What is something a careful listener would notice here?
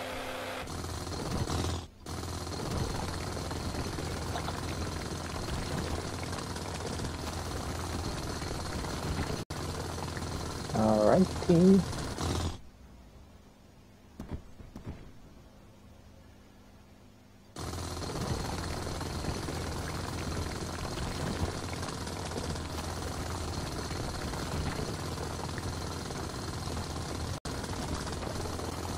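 A drill grinds steadily through rock.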